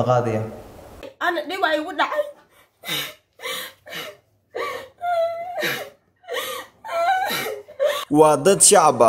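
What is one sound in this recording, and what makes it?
A woman speaks close by in a distressed voice.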